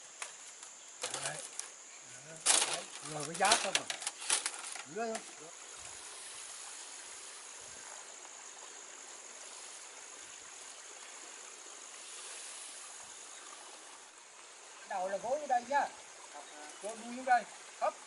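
An elderly man calls out loudly outdoors.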